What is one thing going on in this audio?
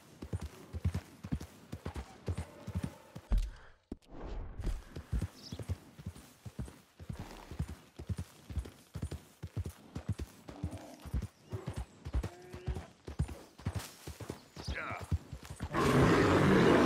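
Horse hooves thud rapidly on soft ground at a gallop.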